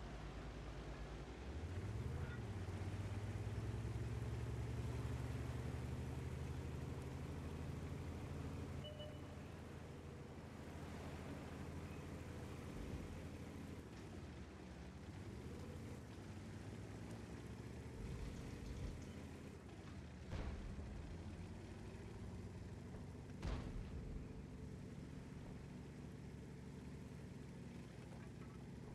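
A tank engine rumbles and drones steadily.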